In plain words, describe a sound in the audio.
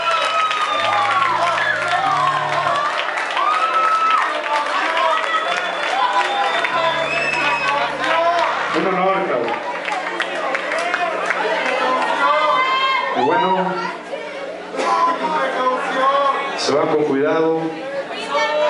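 A band plays loud live music through speakers in a large echoing hall.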